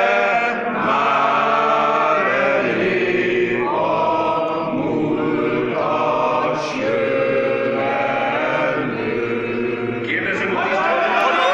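A large crowd of men and women sings together in a big echoing hall.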